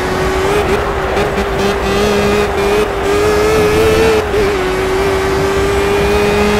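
An open-wheel race car engine screams at high revs.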